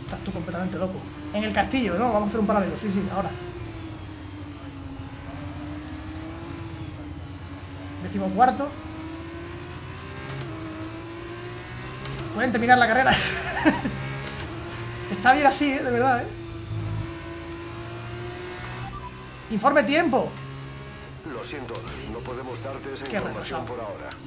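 A racing car engine drones steadily, rising and falling with gear changes.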